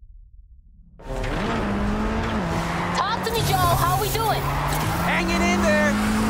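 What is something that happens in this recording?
Car engines roar and rev at high speed.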